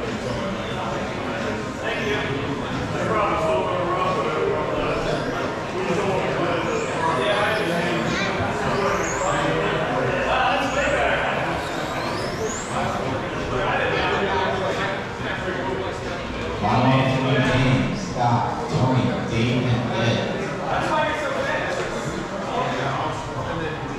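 People chat in a large echoing hall.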